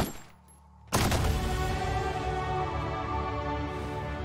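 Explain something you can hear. A chime rings out with a rising musical flourish.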